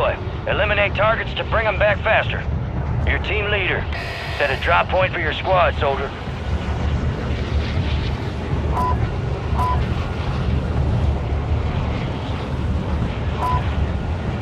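A large aircraft's engines drone steadily.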